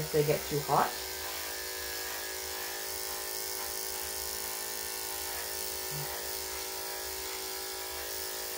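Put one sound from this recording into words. Electric clippers buzz steadily close by.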